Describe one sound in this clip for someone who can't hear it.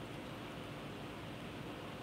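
A man gulps a drink.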